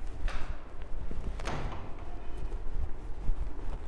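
A duster rubs and squeaks across a whiteboard.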